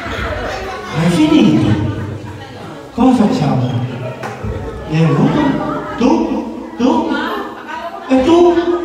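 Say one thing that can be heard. A man speaks loudly and cheerfully in short bursts, close by.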